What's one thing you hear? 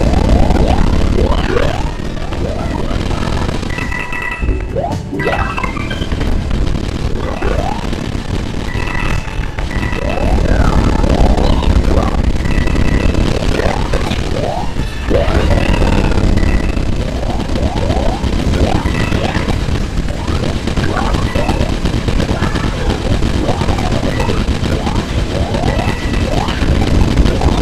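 Video game explosions boom.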